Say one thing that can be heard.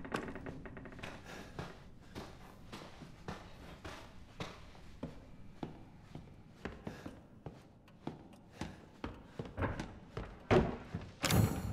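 Footsteps thud slowly across a wooden floor.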